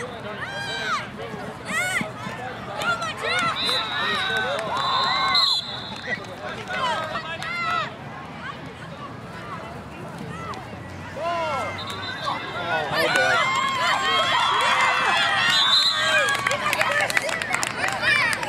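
A crowd of children and adults shout and cheer outdoors.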